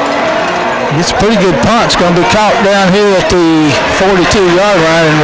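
A crowd of spectators cheers loudly as a play unfolds.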